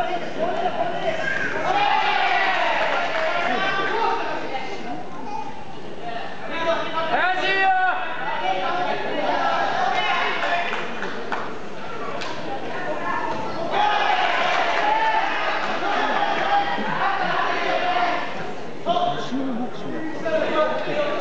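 Spectators shout and call out in a large echoing hall.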